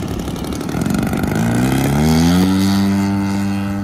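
A model plane's engine revs up loudly, rising in pitch.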